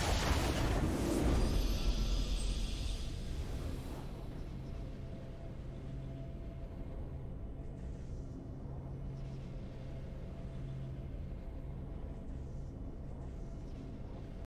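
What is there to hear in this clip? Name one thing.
A triumphant game fanfare plays and settles into a soft, steady tone.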